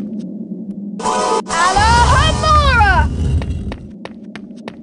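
A magic spell whooshes and sparkles with rising and falling tones.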